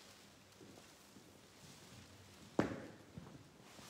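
A man's footsteps sound on a hard floor in a large echoing room.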